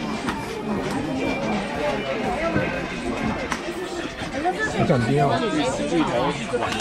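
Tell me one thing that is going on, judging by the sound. Plastic cups clatter on a wooden table.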